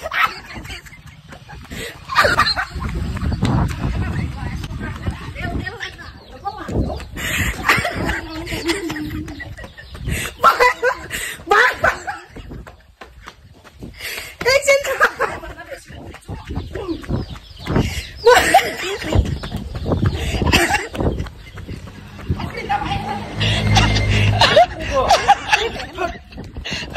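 A young woman talks and laughs excitedly close by.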